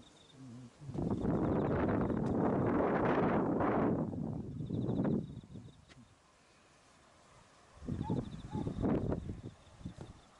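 Wind gusts rumble against the microphone outdoors.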